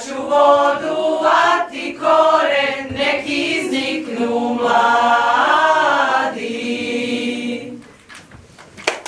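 A group of women sings together.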